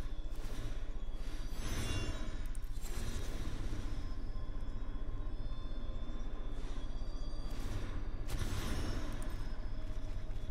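Magical whooshing effects swell and fade in bursts.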